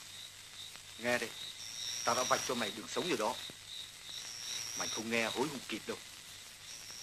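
A man speaks in short phrases nearby.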